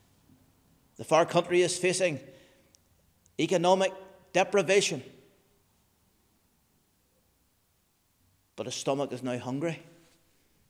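A middle-aged man speaks calmly and clearly into a close microphone, with pauses.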